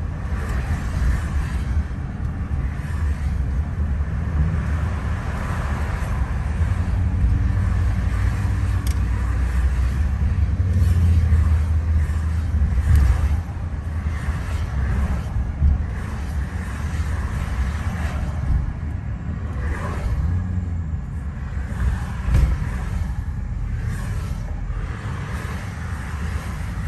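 Passing cars whoosh by close outside.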